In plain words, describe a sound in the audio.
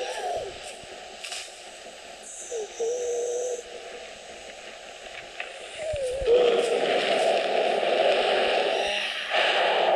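Footsteps rustle through dry cornstalks.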